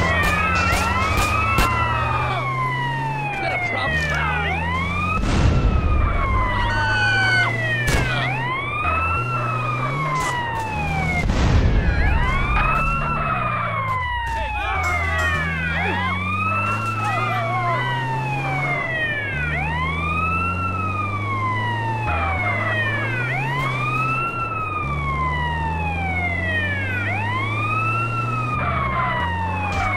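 An ambulance engine roars as it drives fast.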